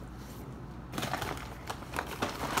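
Paper rustles and crinkles loudly close by.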